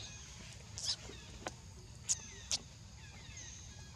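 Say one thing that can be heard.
A baby monkey gives short high squeaks close by.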